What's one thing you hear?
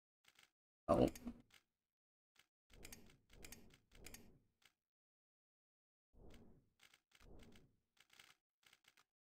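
Game menu clicks blip softly.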